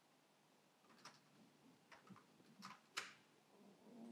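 Keyboard keys click.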